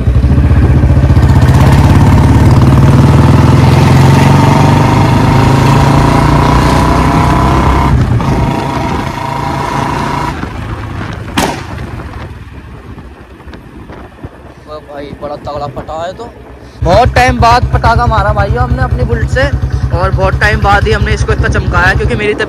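A motorcycle engine thumps loudly, quietens for a few seconds, then roars again.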